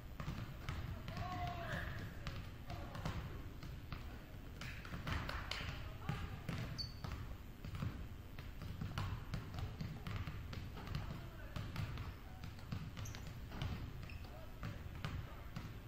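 Basketballs bounce on a hardwood floor, echoing in a large hall.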